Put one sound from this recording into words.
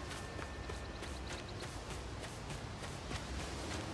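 Footsteps patter quickly over grass.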